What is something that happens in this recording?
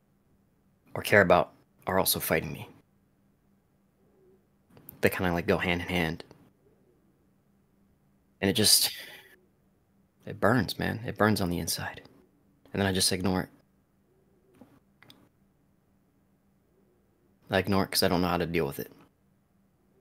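A young man speaks calmly in short phrases over an online call.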